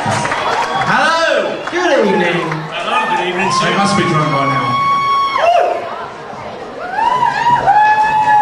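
Men sing in close harmony into microphones.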